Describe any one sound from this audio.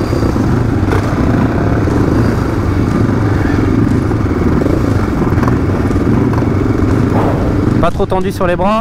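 Several motocross engines idle and rumble close by.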